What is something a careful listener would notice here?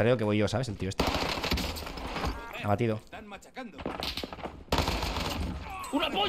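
A submachine gun fires in bursts.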